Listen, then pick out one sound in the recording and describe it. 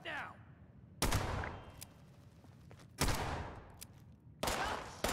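A pistol fires loud shots with a short echo.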